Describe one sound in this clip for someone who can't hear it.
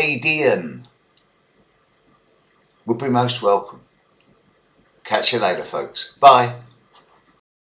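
An older man speaks calmly and warmly, close to a microphone, in short phrases.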